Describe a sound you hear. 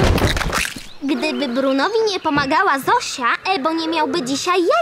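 A young girl speaks with animation, close by.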